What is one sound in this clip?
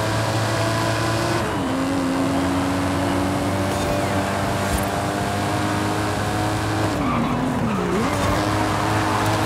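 A car engine roars at high speed, shifting gears and dropping in pitch as it slows.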